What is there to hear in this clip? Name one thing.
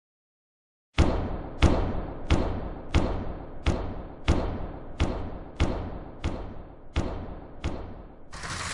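Footsteps thud at an even pace on a hard floor.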